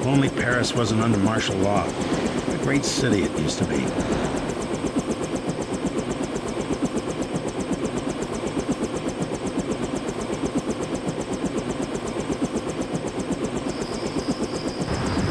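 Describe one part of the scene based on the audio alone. A helicopter's rotor thumps in a fast, steady beat.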